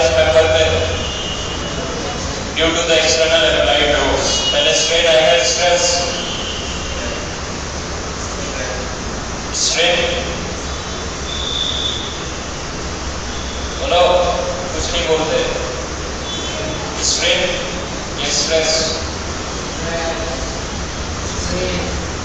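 A young man speaks calmly through a clip-on microphone, with pauses.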